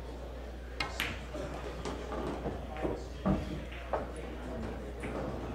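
Billiard balls knock together and roll across the table.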